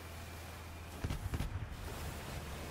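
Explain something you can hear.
Loud bangs go off in quick succession.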